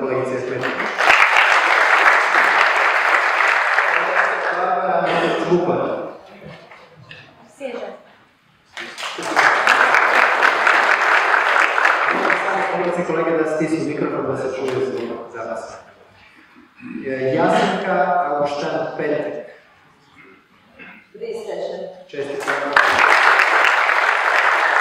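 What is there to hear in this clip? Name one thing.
A large audience applauds in an echoing hall.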